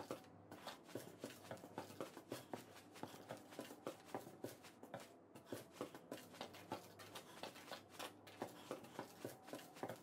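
Footsteps thud quickly on creaking wooden floorboards.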